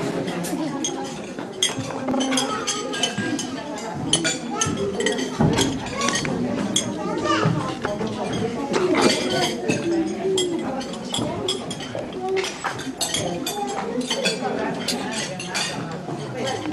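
A crowd of men and women chatter at once, heard close by.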